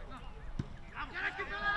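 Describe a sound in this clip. Men shout on an open pitch outdoors.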